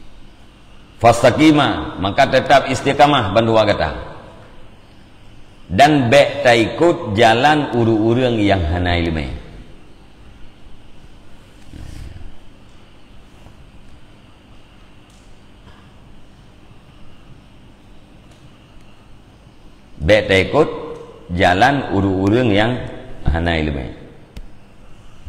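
A middle-aged man speaks calmly into a close microphone, with pauses between phrases.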